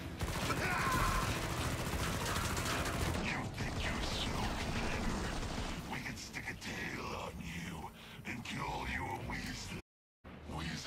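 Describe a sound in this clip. Gunfire rattles rapidly and loudly.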